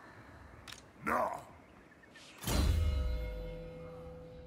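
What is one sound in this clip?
A game menu opens with a short whoosh and chime.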